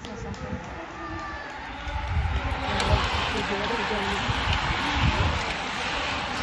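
A pack of racing bicycles whooshes past close by.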